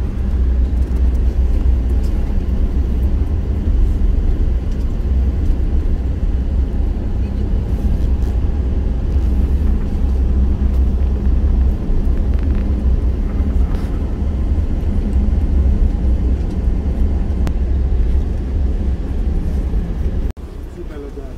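Tyres rumble on an asphalt road.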